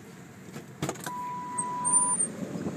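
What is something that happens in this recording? A car door unlatches with a click and swings open.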